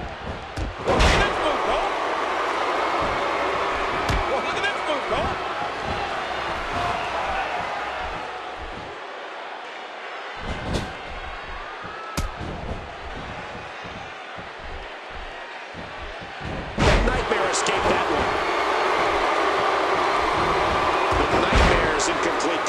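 Heavy thuds sound as bodies slam onto the wrestling ring.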